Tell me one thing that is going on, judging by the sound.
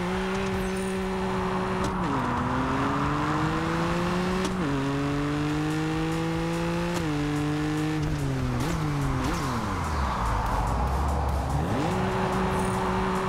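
Tyres screech while a car drifts through turns.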